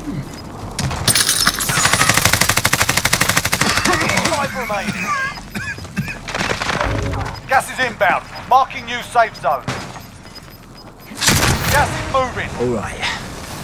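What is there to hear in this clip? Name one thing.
Gunfire rattles in fast bursts, close by.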